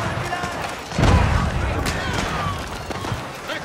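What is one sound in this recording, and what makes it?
A blast booms loudly.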